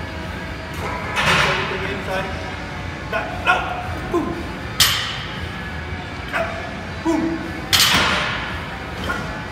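A man breathes out hard with effort.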